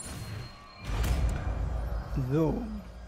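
A magic spell whooshes with a soft crackle.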